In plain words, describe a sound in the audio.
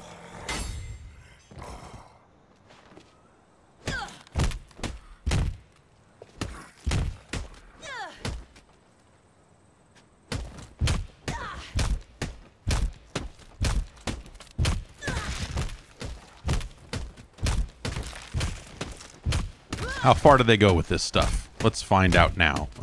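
Heavy blows thud and squelch against a body in quick succession.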